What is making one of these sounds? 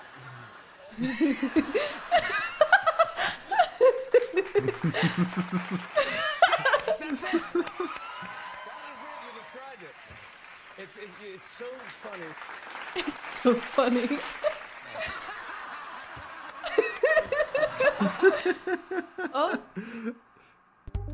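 A man laughs loudly.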